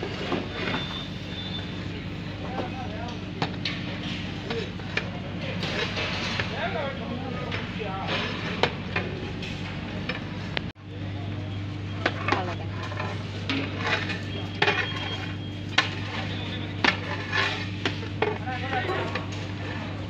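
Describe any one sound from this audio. A metal ladle scrapes and stirs rice in a large metal pot.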